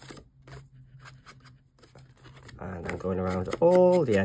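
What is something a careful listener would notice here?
A foam applicator dabs softly against paper.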